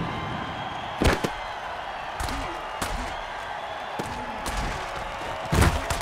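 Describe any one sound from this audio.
Armoured players collide with heavy thuds.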